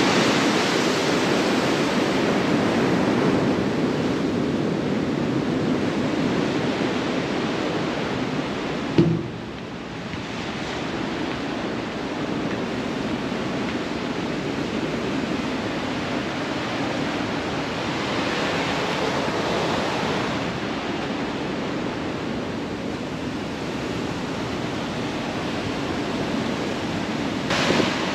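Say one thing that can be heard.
Wind blows steadily outdoors, rumbling across the open sea.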